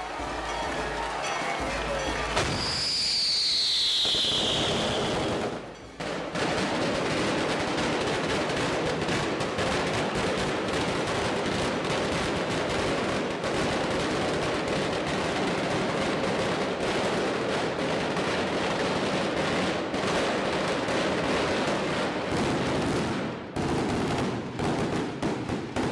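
Firecrackers crackle and bang in a rapid, dense barrage close by.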